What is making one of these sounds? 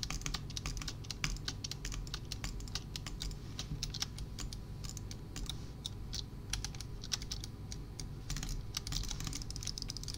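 Blocks are placed in quick succession with short tapping clicks.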